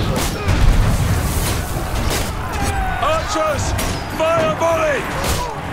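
A heavy crossbow fires bolts with sharp thuds.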